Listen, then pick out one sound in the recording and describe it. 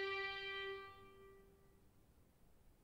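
A violin holds a long note that dies away.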